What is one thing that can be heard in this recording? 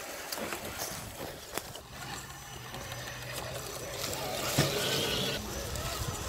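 A small electric motor whines as a toy truck crawls along.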